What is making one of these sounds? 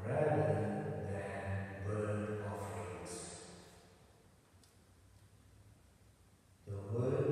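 A man speaks slowly and calmly into a microphone in a large echoing hall.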